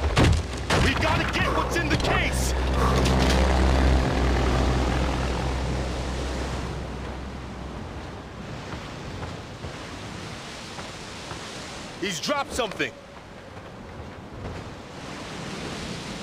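Footsteps crunch over rocky ground.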